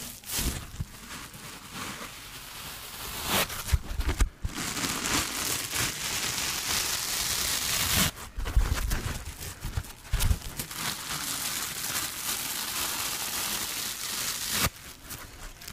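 Foam sponges rub and scratch against each other close up.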